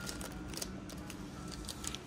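Plastic packets rustle under a hand.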